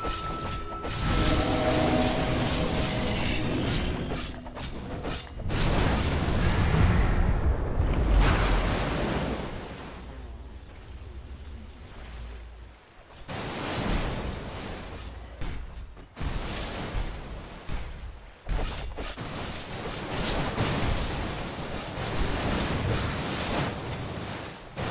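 Magic blasts and weapon clashes ring out in a game battle.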